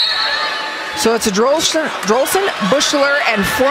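A volleyball bounces on a hard floor a few times.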